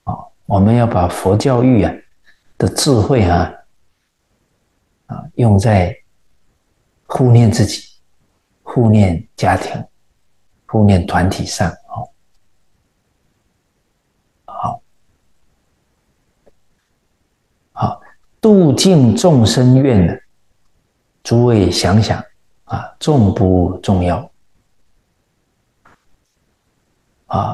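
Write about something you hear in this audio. An elderly man speaks calmly and close to a microphone, in short phrases with pauses.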